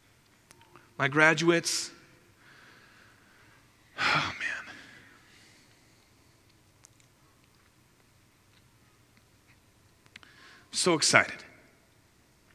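A man speaks calmly into a headset microphone in short phrases with long pauses, in a reverberant hall.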